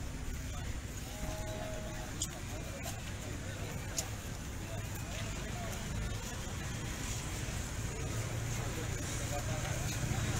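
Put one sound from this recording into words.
A crowd of men and women murmurs and talks outdoors.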